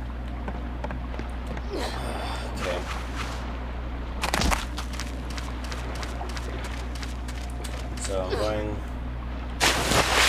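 Footsteps run quickly over hard ground and grass.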